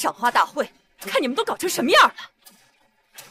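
A young woman speaks scornfully with animation, close by.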